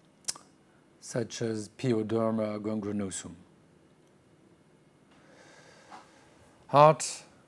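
A middle-aged man speaks calmly into a microphone, heard as in an online talk.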